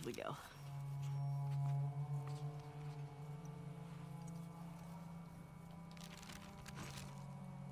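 Paper rustles as a map is handled.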